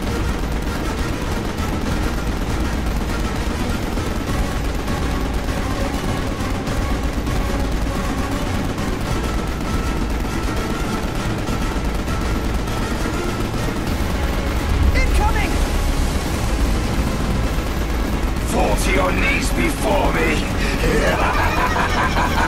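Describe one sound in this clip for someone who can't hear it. A heavy machine gun fires in a steady rapid stream.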